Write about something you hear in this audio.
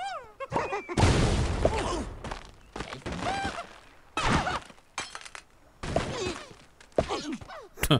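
Wooden blocks crash and tumble down.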